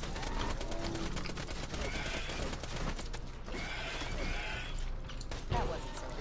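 A creature growls and hisses.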